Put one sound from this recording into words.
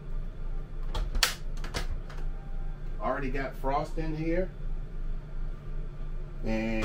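A small door clicks open and shut.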